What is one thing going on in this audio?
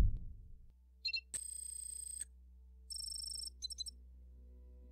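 Soft electronic menu tones chime.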